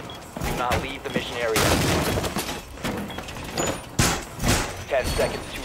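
Blows smash through a wooden barricade with loud cracks.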